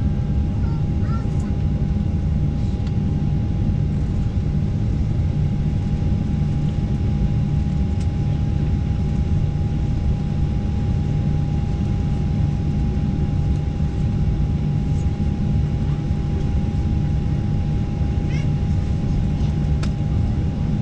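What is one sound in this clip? Jet engines roar steadily in an airliner cabin.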